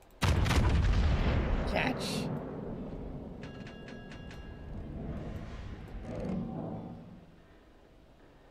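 Heavy naval guns fire with a loud boom that rumbles away.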